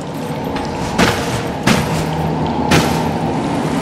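Metal clanks sharply several times.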